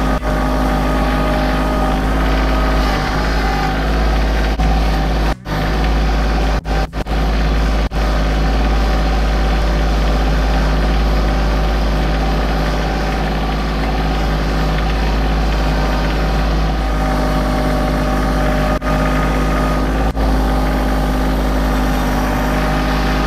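A tiller churns through soil.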